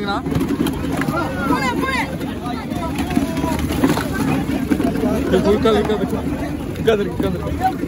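Plastic chairs scrape and clatter as they are moved.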